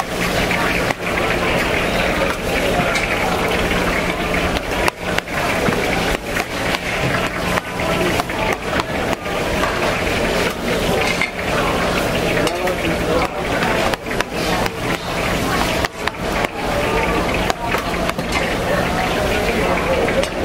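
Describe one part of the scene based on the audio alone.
A knife scrapes and smears soft paste across a metal board.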